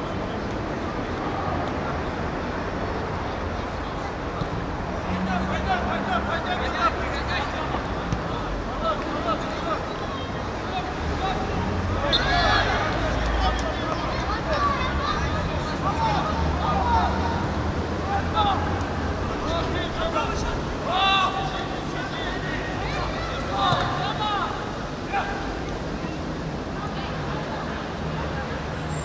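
A distant crowd of spectators murmurs and shouts outdoors.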